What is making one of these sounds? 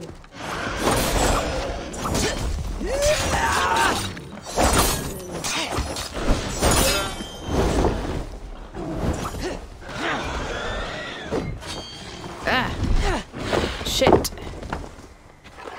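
A huge beast snorts and bellows loudly.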